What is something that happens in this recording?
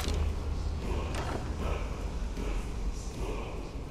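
A heavy wooden chest creaks open.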